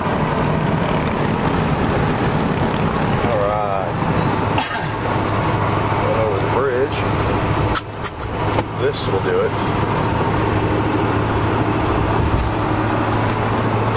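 A car engine hums and tyres roar steadily on a highway.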